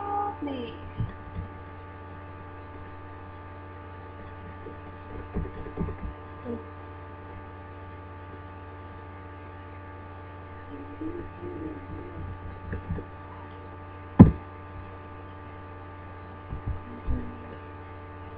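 A young woman speaks quietly and haltingly close to a microphone.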